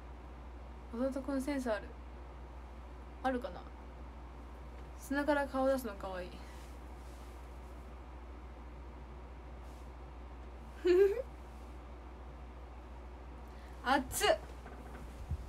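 A young woman speaks cheerfully in short bursts, close by.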